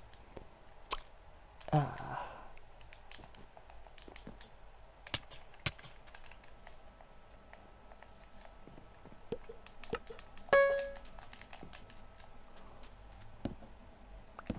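Short game knocks and clicks sound as blocks are struck.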